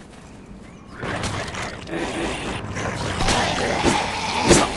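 Gunshots crack in quick bursts in a video game battle.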